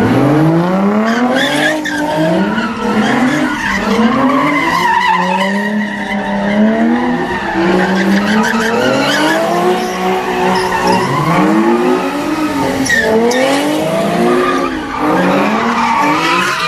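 Tyres squeal on the road.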